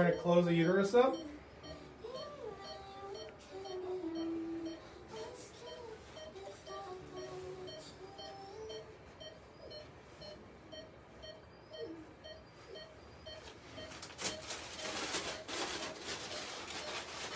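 A patient monitor beeps steadily at an even pace.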